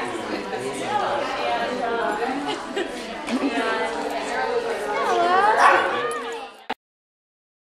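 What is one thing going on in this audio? A dog whines with high, wavering cries.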